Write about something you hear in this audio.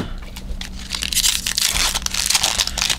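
A cardboard card box rustles and scrapes.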